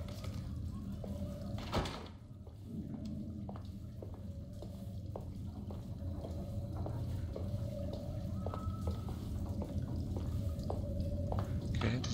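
Footsteps tap slowly across a hard floor.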